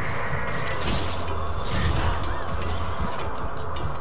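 A large beast roars.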